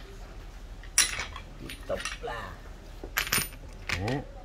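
Metal hand tools clink and clatter as they are moved about.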